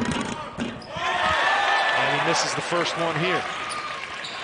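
A crowd cheers and roars in a large echoing hall.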